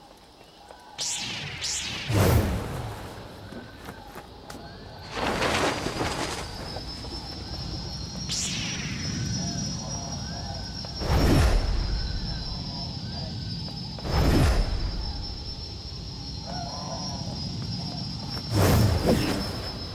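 A lightsaber swooshes through the air in short bursts.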